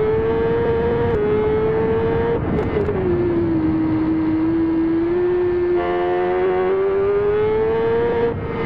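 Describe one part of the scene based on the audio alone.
A motorcycle engine roars at high revs, its pitch rising and falling with gear shifts.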